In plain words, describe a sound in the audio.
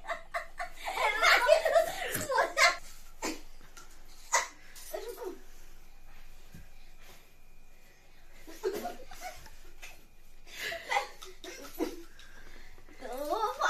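Two women laugh loudly nearby.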